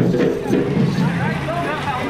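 Wooden barrel drums are beaten by hand.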